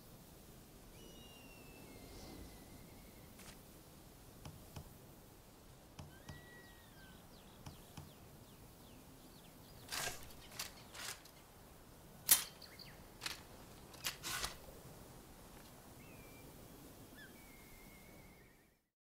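Wind blows softly through tall grass outdoors.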